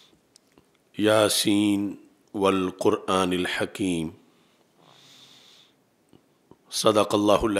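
A middle-aged man speaks slowly and deliberately into a microphone, in short phrases with pauses.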